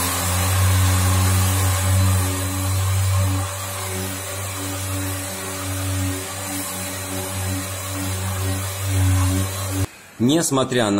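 An electric orbital sander whirs steadily.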